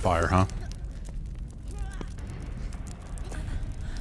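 An explosion booms with a heavy roar.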